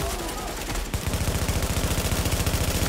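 Gunfire rattles in a rapid, steady burst.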